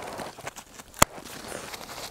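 A ski binding clicks shut.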